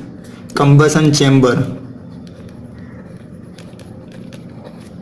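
A pen scratches across paper.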